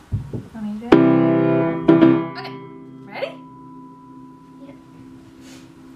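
A piano chord is struck and rings out.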